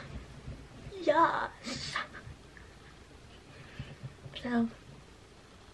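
A young girl speaks expressively and close by.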